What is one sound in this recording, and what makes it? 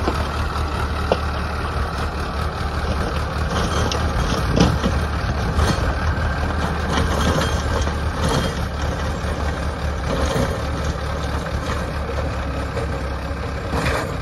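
A rotary tiller churns through dry soil.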